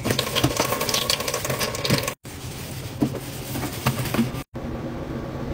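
A sponge scrubs a metal sink with squeaks and rubs.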